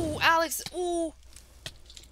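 A fiery creature crackles and breathes nearby.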